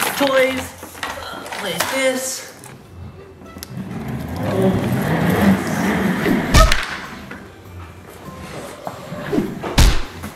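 Plastic wheels of a baby walker roll across a wooden floor.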